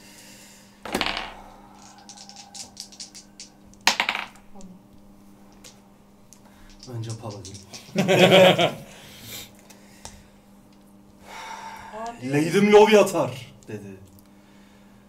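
Several men laugh together.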